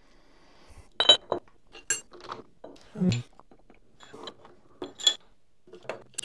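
Metal parts clink as a vise is cranked tight.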